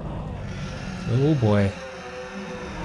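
A deep monstrous voice roars loudly.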